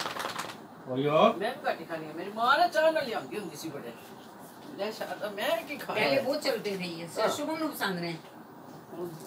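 An elderly woman speaks loudly and with animation close by.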